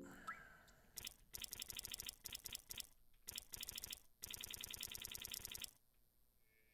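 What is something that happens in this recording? A game menu cursor ticks rapidly in quick bursts.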